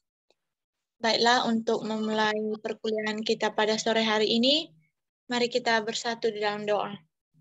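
A young woman speaks steadily over an online call.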